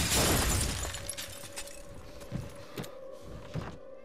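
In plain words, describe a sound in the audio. A pistol clatters onto a wooden floor.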